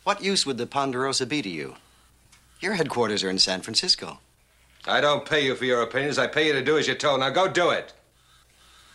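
A middle-aged man speaks firmly nearby.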